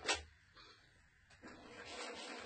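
A spray can hisses briefly.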